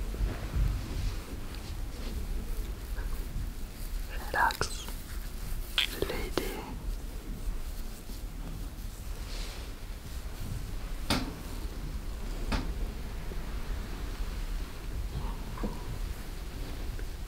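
Hands rub and brush against hair and skin close by.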